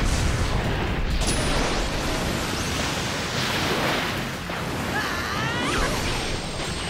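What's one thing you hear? A swirling blast of energy roars and rushes.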